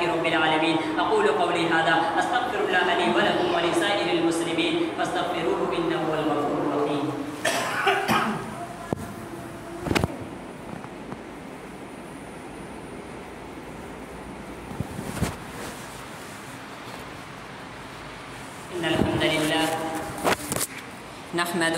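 A young man speaks steadily in a measured, chanting voice close to a microphone.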